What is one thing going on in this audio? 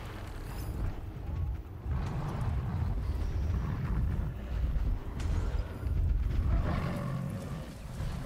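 Wind blows in low, heavy gusts.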